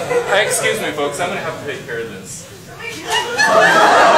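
A man speaks calmly to an audience in a large room.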